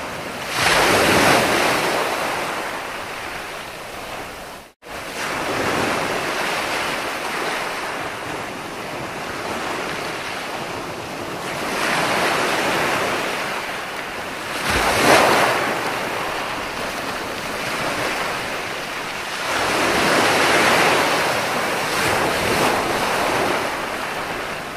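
Waves break and crash onto a beach in surges.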